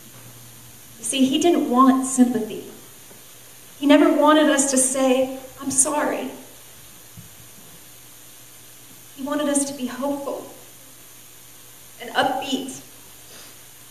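A woman speaks calmly into a microphone, heard through a loudspeaker, in short phrases with pauses.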